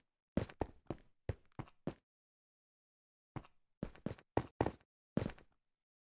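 Footsteps thump quickly on hard blocks in a video game.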